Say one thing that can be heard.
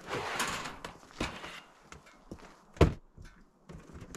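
A plastic crate thumps onto a wooden deck.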